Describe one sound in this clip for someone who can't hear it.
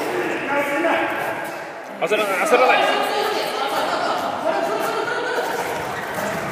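Several young people shout and groan with strain, echoing in a large hall.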